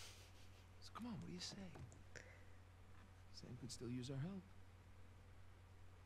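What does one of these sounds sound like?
A young woman laughs softly close to a microphone.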